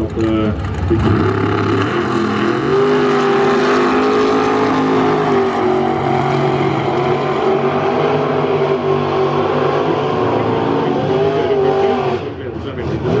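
A race car engine roars loudly as the car accelerates hard and speeds away.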